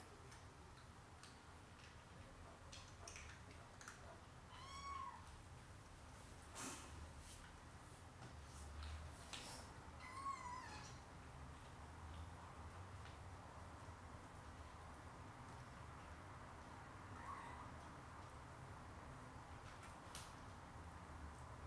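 Kittens lap and chew food.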